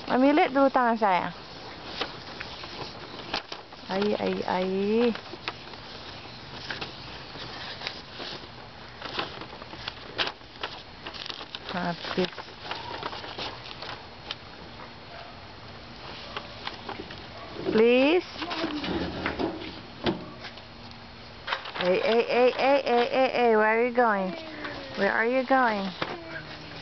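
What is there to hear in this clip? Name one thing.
A little girl talks and squeals close by.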